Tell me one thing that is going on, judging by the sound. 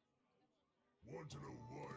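A bright magical swoosh sounds as a card is played.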